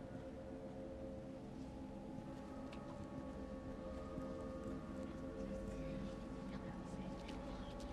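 Footsteps crunch softly on leaves and gravel.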